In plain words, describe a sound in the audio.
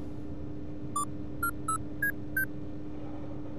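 Keypad buttons beep in a short run of high tones.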